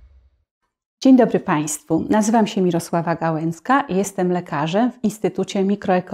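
A woman speaks calmly and clearly into a microphone, close by.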